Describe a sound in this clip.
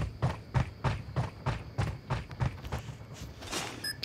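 Quick footsteps thud on a metal deck.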